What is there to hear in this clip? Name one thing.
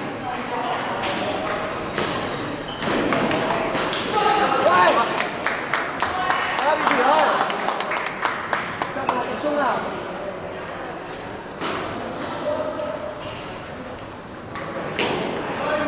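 Voices of a crowd chatter in a large echoing hall.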